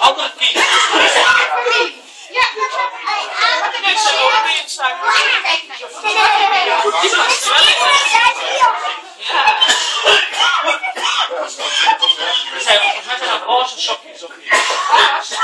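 Several children talk and chatter excitedly close by.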